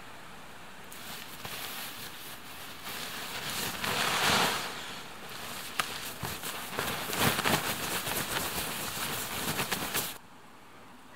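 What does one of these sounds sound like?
Nylon fabric rustles and crinkles as it is handled.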